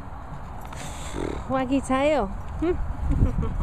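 A dog whines and yelps excitedly.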